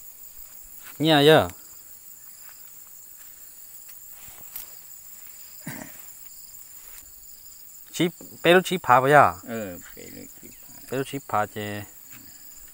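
An elderly man speaks in short bursts close by.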